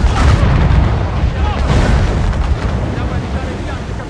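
Waves crash against a ship.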